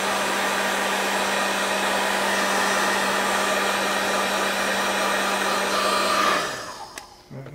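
A heat gun blows with a steady loud roar and hum, then switches off.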